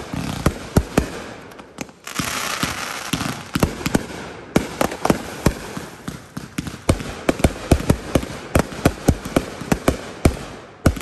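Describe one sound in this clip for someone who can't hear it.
Sparks from fireworks crackle and hiss.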